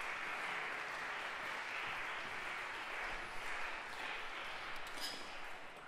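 Footsteps thud on a wooden stage in a large echoing hall.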